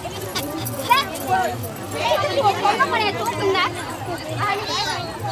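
Several women talk and call out excitedly nearby, outdoors.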